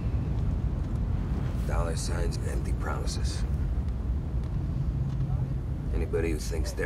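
A car engine rumbles low and steady as the car drives along.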